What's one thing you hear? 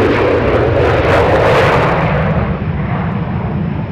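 Tyres screech as a jet touches down on the runway.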